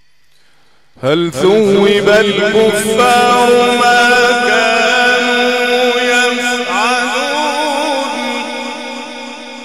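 An older man chants loudly in a long, wavering melody through a microphone and echoing loudspeakers.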